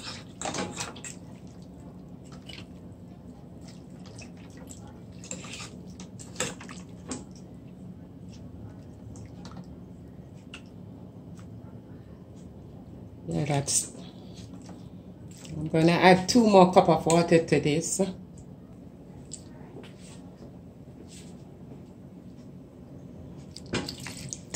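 Soup bubbles gently in a pot.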